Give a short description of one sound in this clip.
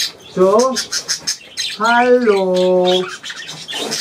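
An elderly man calls out to birds.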